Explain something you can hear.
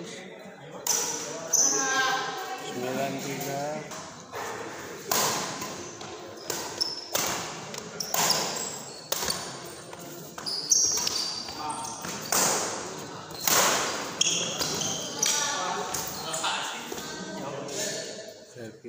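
Rackets smack a shuttlecock in quick exchanges, echoing in a large hall.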